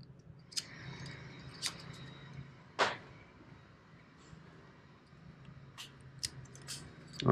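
Small metal parts click and clink against each other close by.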